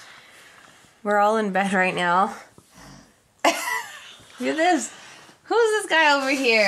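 A young woman speaks softly and playfully close by.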